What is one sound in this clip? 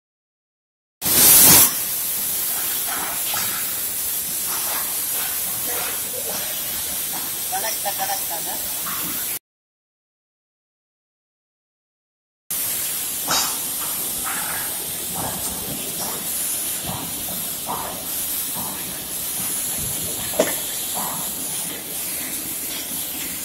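A cutting torch hisses and roars steadily.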